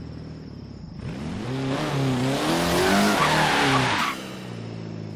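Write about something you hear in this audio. Tyres screech as a car slides sideways.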